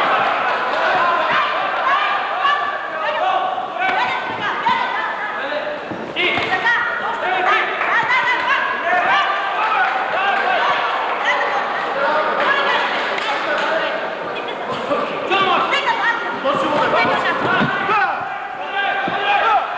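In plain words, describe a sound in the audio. Gloved punches thud against bodies.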